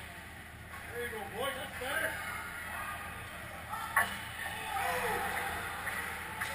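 Young players shout across a large echoing rink.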